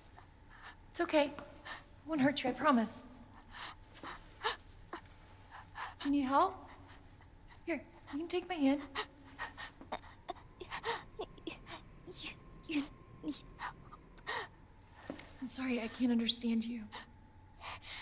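A young woman speaks softly and reassuringly.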